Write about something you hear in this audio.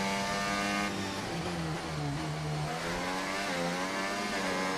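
A racing car engine drops in pitch as the car slows, then revs up again.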